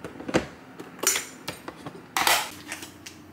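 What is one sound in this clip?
A lid clicks open on a cooker.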